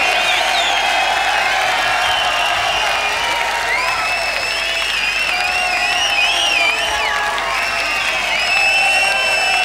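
A large crowd cheers loudly in a big hall.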